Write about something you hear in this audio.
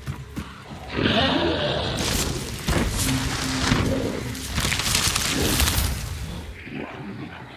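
A shimmering magical burst whooshes loudly and then fades.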